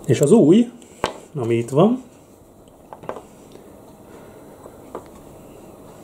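Small metal parts click softly as they are set down on a wooden table.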